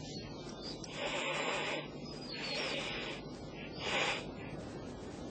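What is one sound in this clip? An ostrich hisses in short, breathy bursts.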